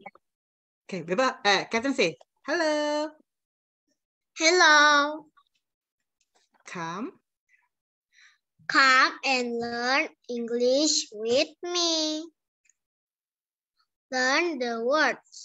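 A young girl answers in a high voice over an online call.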